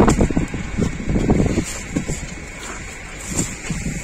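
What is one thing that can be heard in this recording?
Cardboard boxes thud as they are set down.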